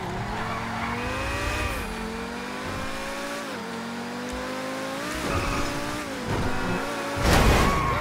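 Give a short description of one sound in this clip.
A sports car engine revs up and shifts gears as the car speeds along.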